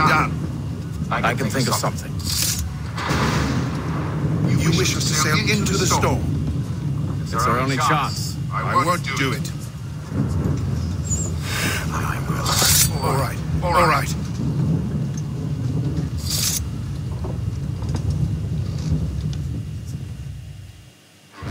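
Wind and waves rumble steadily outdoors.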